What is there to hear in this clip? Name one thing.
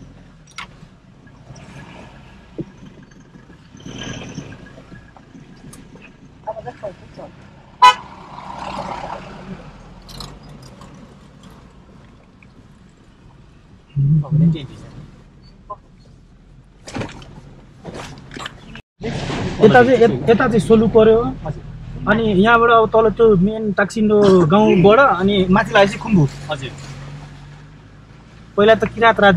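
Tyres crunch and bump over a rough, stony dirt road.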